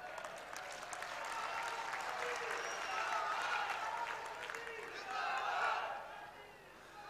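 A large crowd cheers and claps outdoors.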